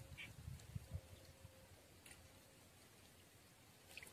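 Something small splashes into still water nearby.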